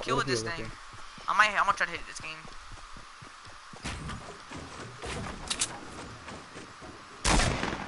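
Quick knocks sound as wooden ramps and walls are built.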